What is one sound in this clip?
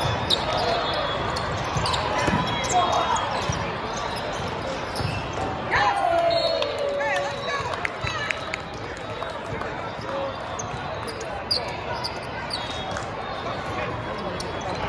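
A crowd of young players and spectators chatters and calls out.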